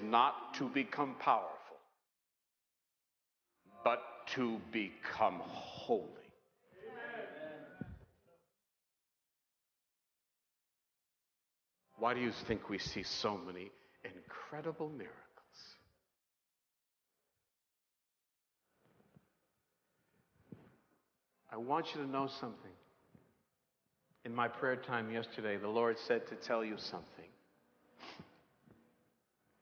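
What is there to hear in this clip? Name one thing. A middle-aged man preaches with animation into a microphone, pausing between phrases.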